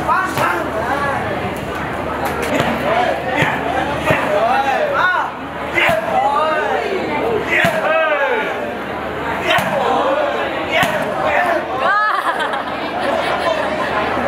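Kicks and punches thud sharply against padded shields.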